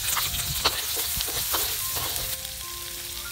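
Food sizzles in a hot wok.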